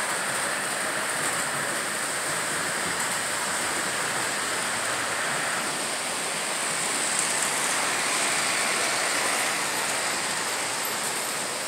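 A small model train whirs softly along its track.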